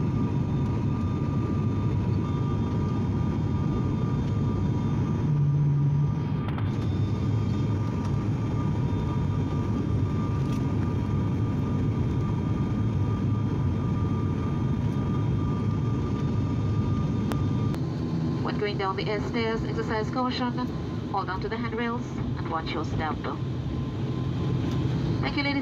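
Propeller engines drone steadily inside an aircraft cabin.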